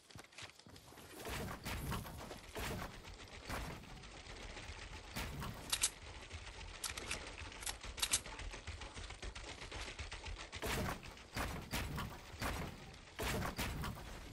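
Building pieces snap into place with quick clacks.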